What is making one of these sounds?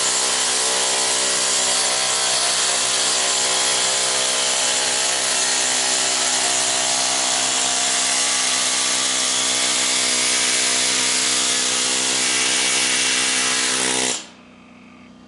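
A pneumatic air tool whines loudly and steadily.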